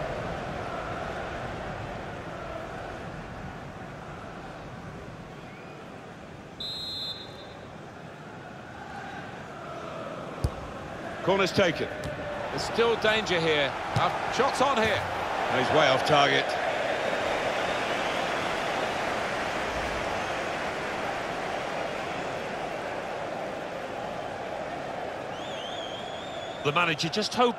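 A large stadium crowd murmurs steadily, then swells into a loud roar.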